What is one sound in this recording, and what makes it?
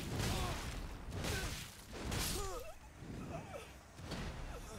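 A man grunts and shouts in combat.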